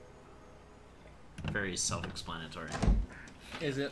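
A heavy wooden door creaks open slowly.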